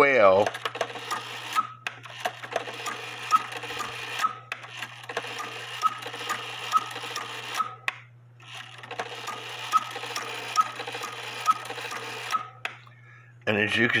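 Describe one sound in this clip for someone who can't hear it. A clock mechanism whirs and clicks rapidly as its gears turn.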